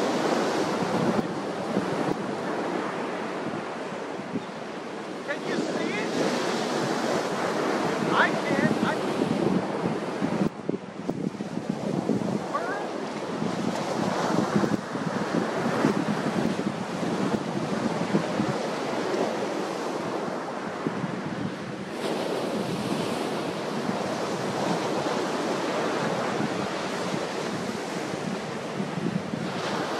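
Wind blows hard across the open beach.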